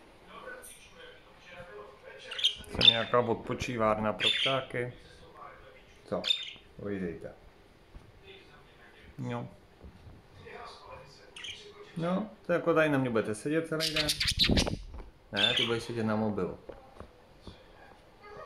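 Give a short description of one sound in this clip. Budgerigars chirp and chatter softly.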